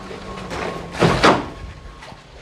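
A plastic pipe thumps down onto a concrete floor.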